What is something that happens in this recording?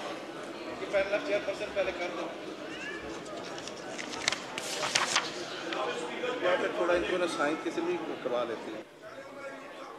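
Many men talk and shout at once in a large echoing hall.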